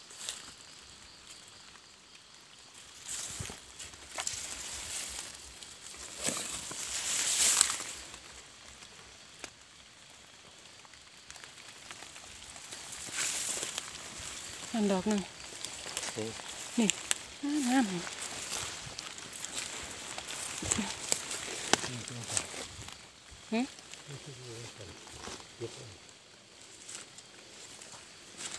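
Dry leaves rustle and crunch underfoot.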